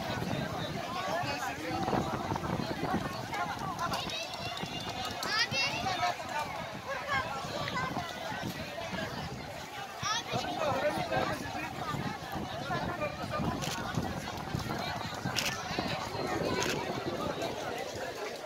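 A large crowd of men, women and children chatters all around outdoors.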